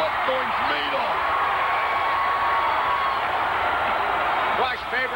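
A large crowd cheers and shouts steadily in a big echoing arena.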